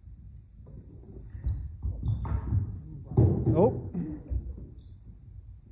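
Footsteps thud and squeak on a wooden floor in an echoing hall.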